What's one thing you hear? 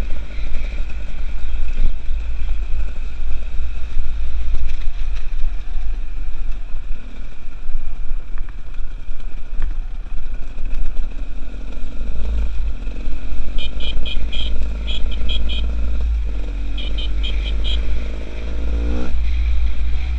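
A two-stroke enduro motorcycle rides along a rocky dirt trail.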